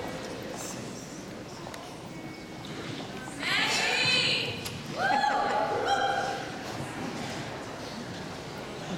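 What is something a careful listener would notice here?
A group of young women sing backing harmonies together.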